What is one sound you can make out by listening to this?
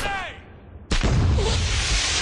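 A smoke grenade bursts with a loud pop.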